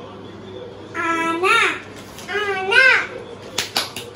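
A little boy shouts excitedly, close by.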